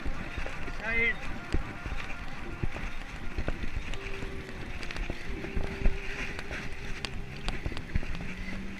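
A bicycle rattles and bumps over an uneven path.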